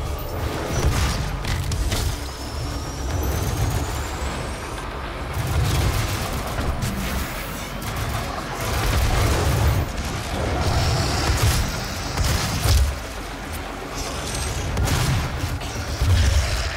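Gunshots blast in quick bursts.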